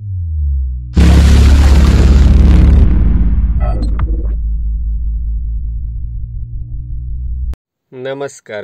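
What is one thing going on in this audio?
A loud explosion bursts and slowly rumbles away.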